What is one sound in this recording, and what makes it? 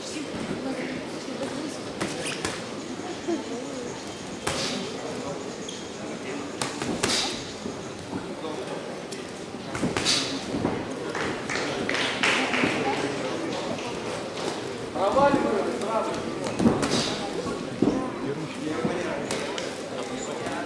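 Gloves thud against bodies in sharp punches.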